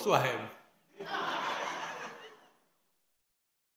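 An elderly man laughs heartily into a microphone.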